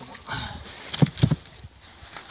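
A wooden hive lid knocks and scrapes.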